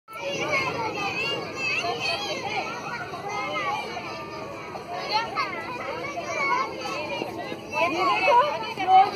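A crowd of children chatter and shout excitedly outdoors.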